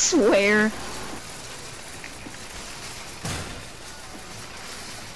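A shopping cart rattles as its wheels roll over the ground.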